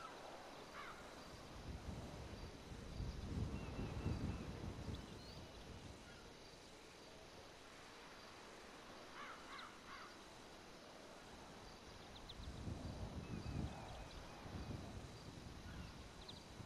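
Wind blows in low gusts outdoors.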